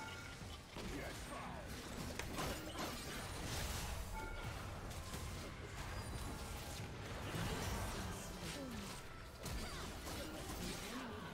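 Game spell effects whoosh and clash.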